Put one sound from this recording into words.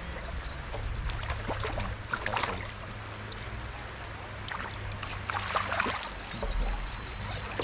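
A fish splashes in the water close by.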